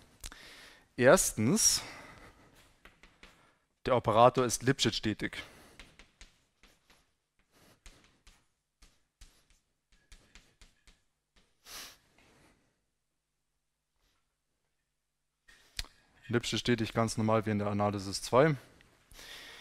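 A man lectures aloud in an echoing hall, speaking in short bursts.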